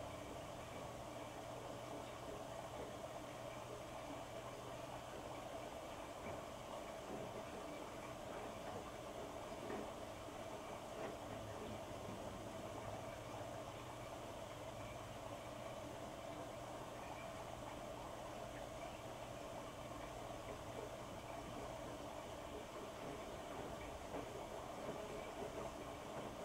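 Wet laundry tumbles and thumps softly inside a washing machine drum.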